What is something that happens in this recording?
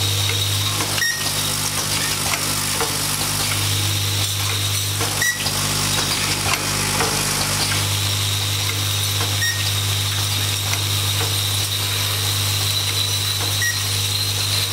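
Metal parts of a machine click and clack at regular intervals.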